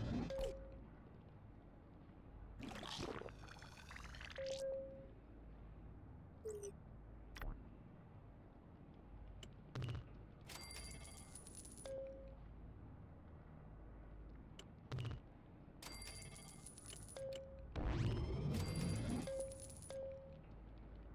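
Short electronic menu beeps sound now and then.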